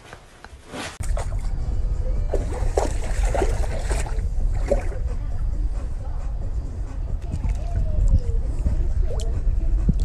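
Water laps and splashes in a pool.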